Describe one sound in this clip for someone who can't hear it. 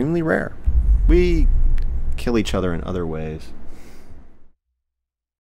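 A young man speaks close by.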